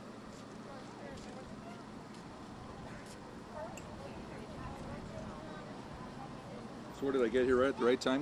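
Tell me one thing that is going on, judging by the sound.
Leaves rustle softly as a bear shifts on a tree branch.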